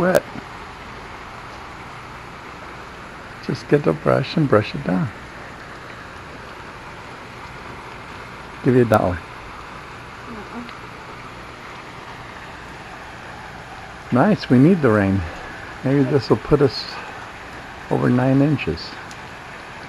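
Light rain patters steadily on wet pavement outdoors.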